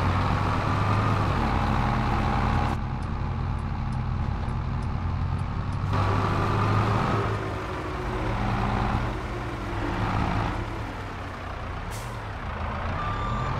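A heavy diesel engine rumbles steadily and revs up and down.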